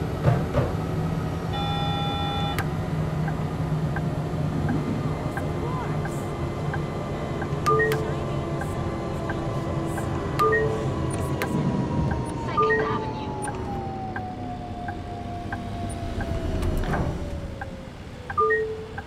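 A tram's electric motor hums and whines, slowly falling in pitch as the tram slows down.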